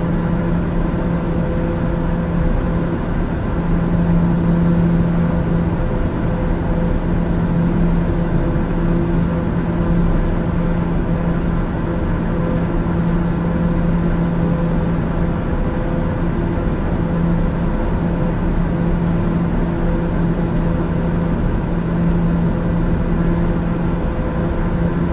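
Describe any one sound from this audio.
A single-engine turboprop drones steadily in cruise, heard from inside the cockpit.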